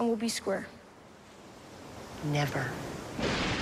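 A woman speaks tensely nearby.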